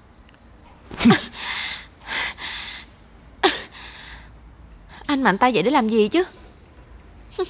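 A young woman answers quietly and close by.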